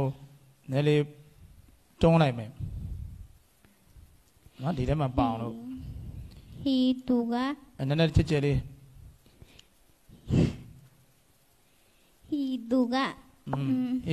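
A young woman reads aloud slowly into a microphone, with pauses.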